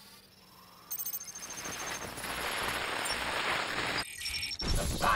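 Radio static hisses and crackles.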